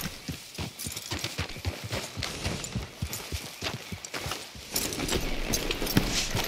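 Horse hooves thud steadily on soft ground.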